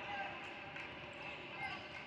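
A man shouts instructions from the sideline.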